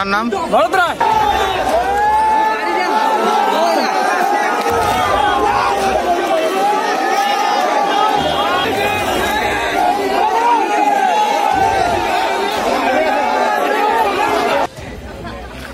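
A large crowd shouts and clamours outdoors.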